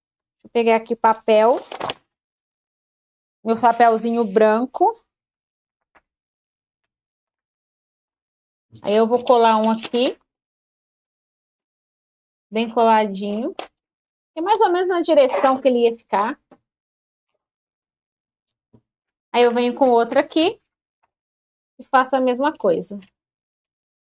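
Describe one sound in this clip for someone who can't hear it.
A woman speaks calmly close to a microphone, in short phrases with pauses.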